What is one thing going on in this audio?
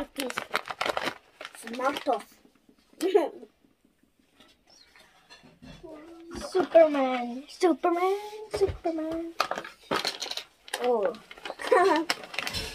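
A young girl talks and exclaims excitedly nearby.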